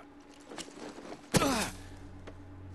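A man lands with a thud in undergrowth.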